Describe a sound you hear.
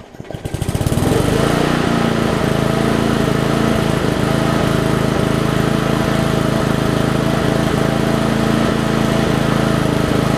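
A lawn mower engine sputters to life and runs with a steady, loud rattle, outdoors.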